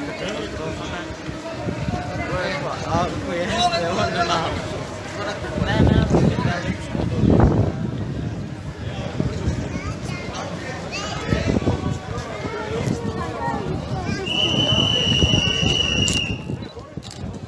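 A crowd of men and women talks and shouts outdoors.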